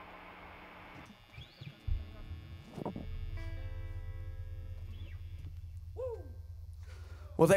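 An electric guitar plays a few quiet notes.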